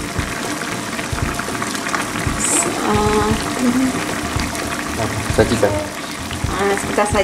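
Sauce bubbles and simmers in a pan.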